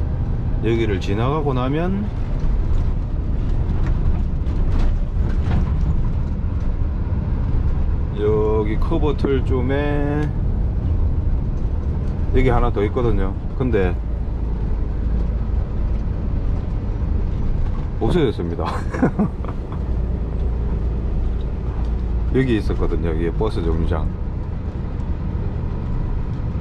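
A large vehicle's engine rumbles steadily as it drives.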